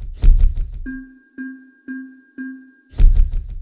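Game menu tones beep in quick succession.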